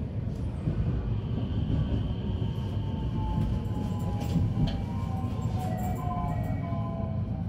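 Train brakes squeal as the train slows into a station.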